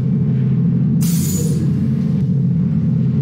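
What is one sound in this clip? An elevator door slides open.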